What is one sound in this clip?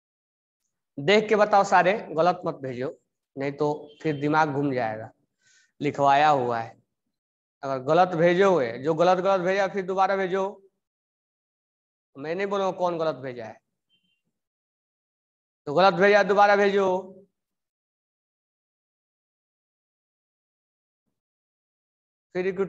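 A man speaks calmly and closely, in short phrases with pauses.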